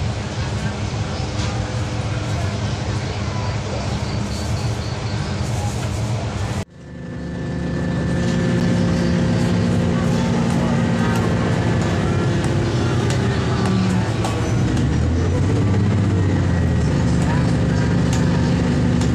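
Steel wheels rumble and clack on the rails.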